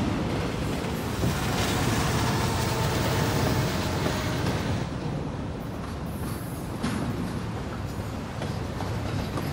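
A freight train rumbles past with a deep, steady roar.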